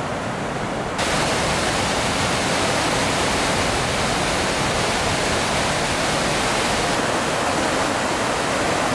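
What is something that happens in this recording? Water rushes and churns loudly over a weir.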